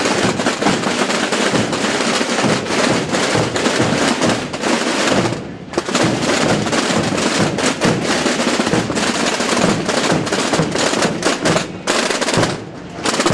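Many drums beat together in a loud, rapid roll that echoes between walls.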